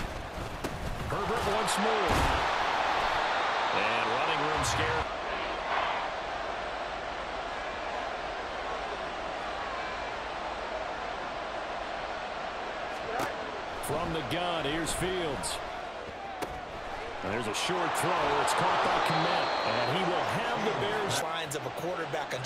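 A large stadium crowd roars and cheers, swelling loudly during plays.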